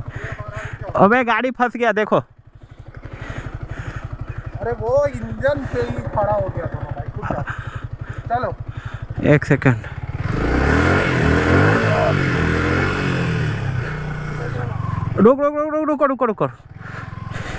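A motorcycle engine revs up sharply and drops back.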